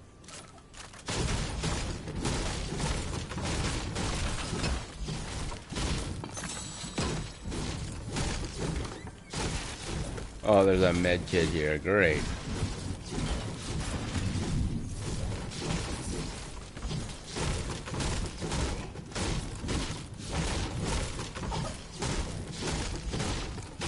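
A pickaxe strikes and smashes objects repeatedly.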